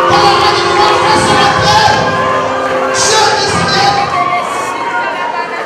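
A large crowd of men and women sings and calls out together.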